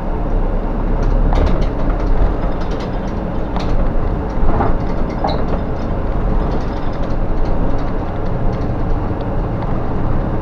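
The bus body rattles and clatters over the road.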